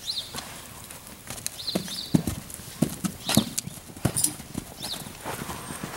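Horses' hooves thud on soft dirt as they trot.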